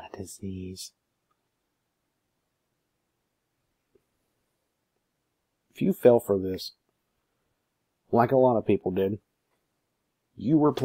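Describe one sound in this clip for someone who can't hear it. A man speaks calmly and haltingly, close to a microphone, with long pauses.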